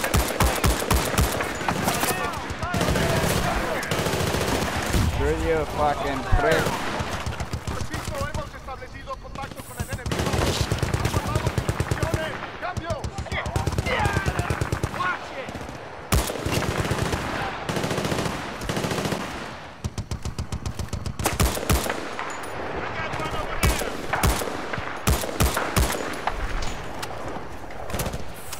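Rapid rifle shots crack in short bursts.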